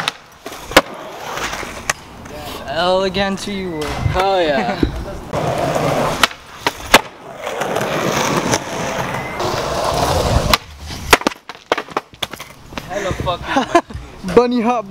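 A skateboard slaps and clacks against concrete.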